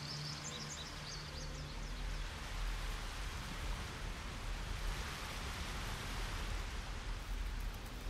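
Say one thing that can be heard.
A waterfall rushes nearby.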